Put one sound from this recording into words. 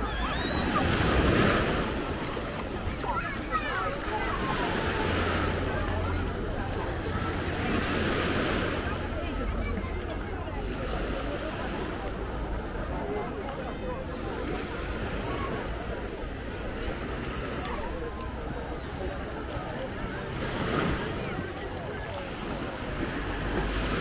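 Small waves wash onto a pebble beach.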